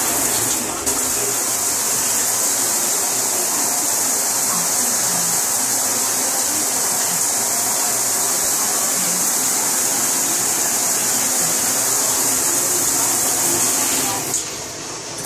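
Water pours steadily from an overhead shower.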